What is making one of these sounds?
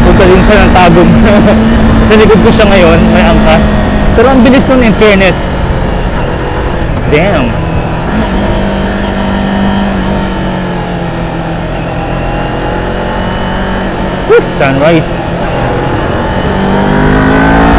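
A parallel-twin sport motorcycle engine hums while cruising.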